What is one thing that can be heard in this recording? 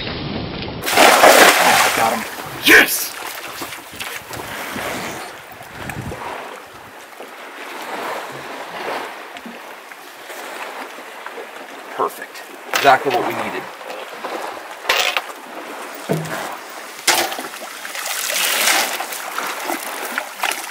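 Wind blows over open water.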